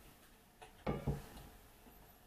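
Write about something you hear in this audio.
A kettle clunks as it is lifted.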